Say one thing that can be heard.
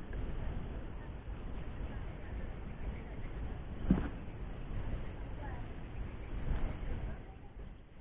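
Hands rustle and pull a nylon cast net.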